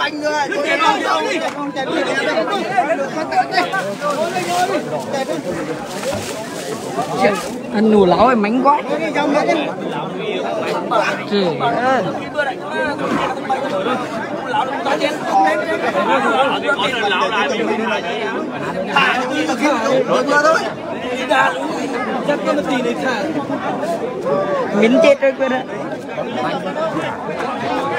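A crowd of men talk and shout all around, close by.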